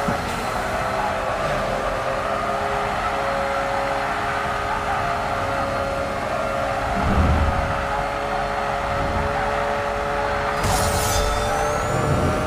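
Tyres squeal as a car drifts.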